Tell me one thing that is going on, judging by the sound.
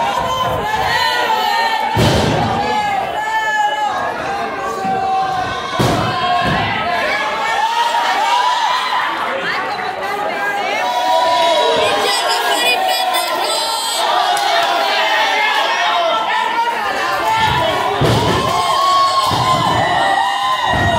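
A crowd cheers and shouts loudly in an echoing hall.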